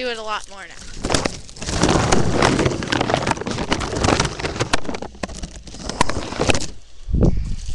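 A crinkly plastic wrapping rustles and crackles loudly against a microphone.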